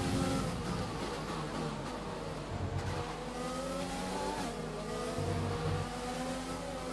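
A racing car engine screams at high revs, rising and dropping as it shifts gears.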